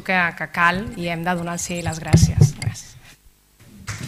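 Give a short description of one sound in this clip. A woman speaks through a microphone in a large room.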